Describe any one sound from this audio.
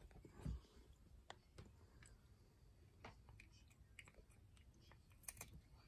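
A cat crunches dry treats.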